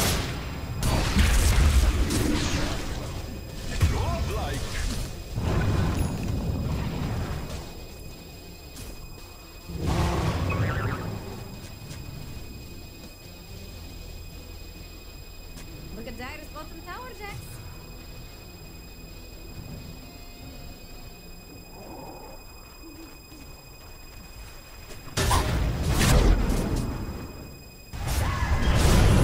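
Magical blasts and clashing bursts sound loudly in a battle.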